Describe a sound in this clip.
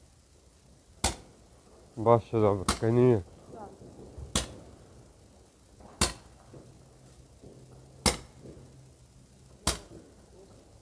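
Firecrackers explode with sharp, loud bangs that echo off nearby walls, one every second or two.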